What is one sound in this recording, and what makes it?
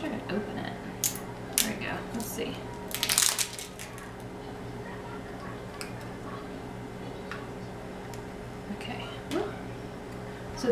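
Small plastic cases click and tap.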